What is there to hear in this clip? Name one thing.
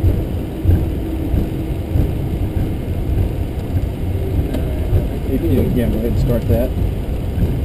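An aircraft engine rumbles steadily from inside a cockpit.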